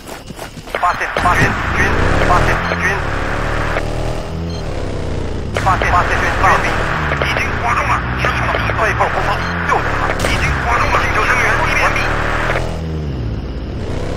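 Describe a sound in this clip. A vehicle engine revs up and down as it drives.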